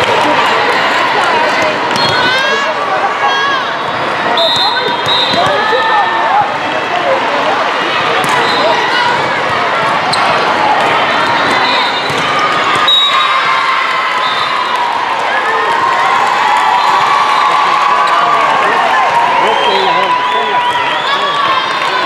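Many people talk and shout at once in a large echoing hall.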